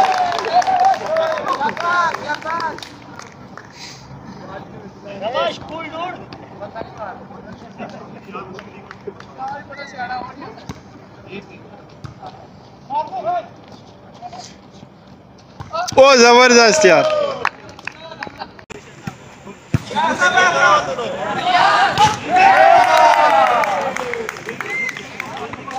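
Young men shout and call out across an open outdoor court.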